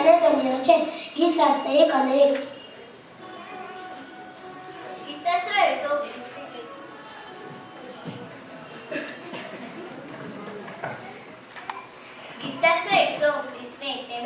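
A young boy speaks into a microphone over a loudspeaker.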